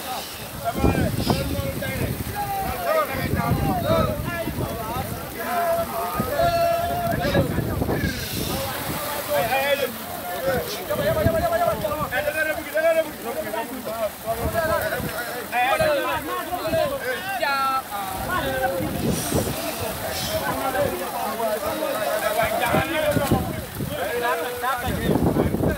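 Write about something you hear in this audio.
A group of men shout and call out to one another close by.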